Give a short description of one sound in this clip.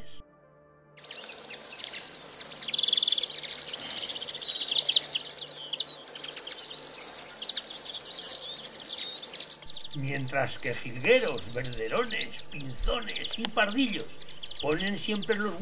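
Many small birds chirp and twitter busily close by.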